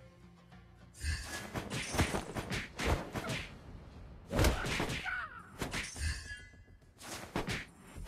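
Game sound effects of blasts and strikes burst out repeatedly.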